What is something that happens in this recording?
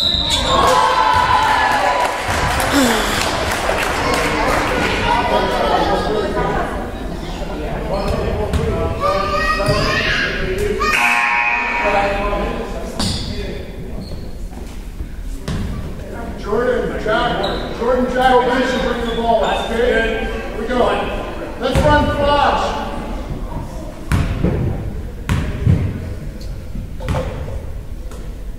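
A crowd of spectators and players chatter and call out in a large echoing gym.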